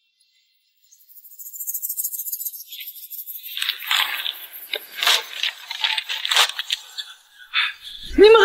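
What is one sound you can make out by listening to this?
Paper pages rustle as a booklet is opened.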